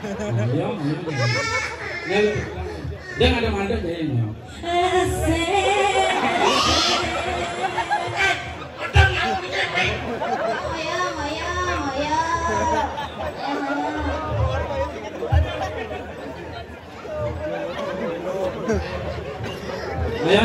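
A man speaks with animation through a microphone over a loudspeaker.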